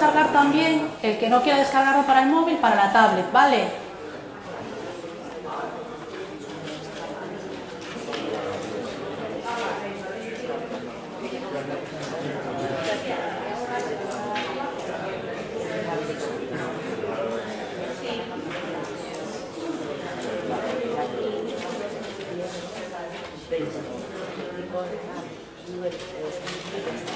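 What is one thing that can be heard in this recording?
A woman speaks steadily to an audience in an echoing room.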